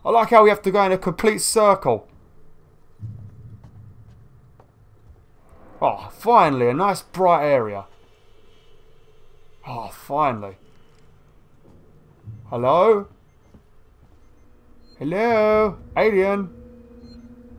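A man talks animatedly into a microphone in short bursts.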